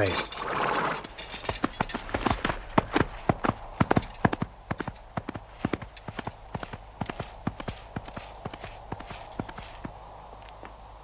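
Horse hooves clatter quickly on hard ground.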